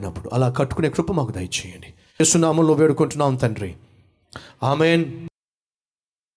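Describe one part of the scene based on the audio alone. A man speaks with feeling through a microphone.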